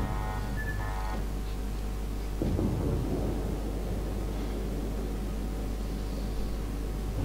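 A ship's engine hums low and steady.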